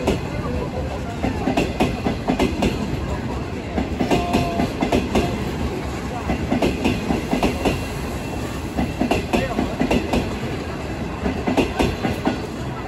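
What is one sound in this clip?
A passenger train rumbles slowly along the tracks.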